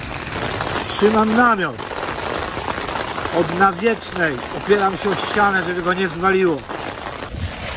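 A middle-aged man talks close up, with animation.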